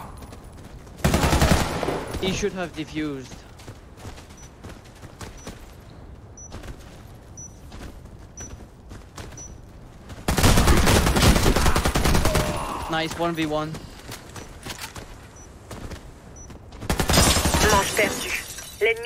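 Gunfire bursts out in loud rapid volleys.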